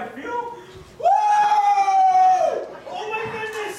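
A man shouts loudly in a long drawn-out cry.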